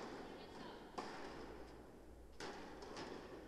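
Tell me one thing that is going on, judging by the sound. A tennis ball bounces on a court.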